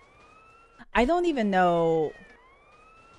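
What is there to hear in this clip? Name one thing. A young woman speaks loudly and animatedly into a close microphone.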